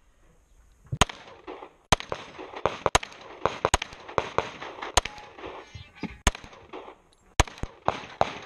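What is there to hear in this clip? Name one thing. A pistol fires a rapid string of sharp, loud shots outdoors.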